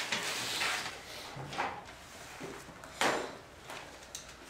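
Sheets of paper rustle and flap.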